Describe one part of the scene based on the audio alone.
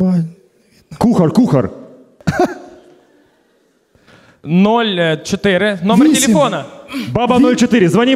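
A man talks into a handheld microphone.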